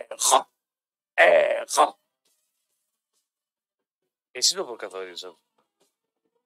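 A man speaks in short bursts, heard over a radio broadcast.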